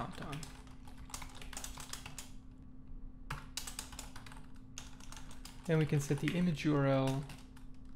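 Keys clatter quickly on a computer keyboard.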